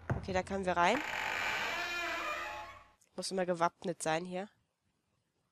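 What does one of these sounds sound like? A woman talks calmly and closely into a microphone.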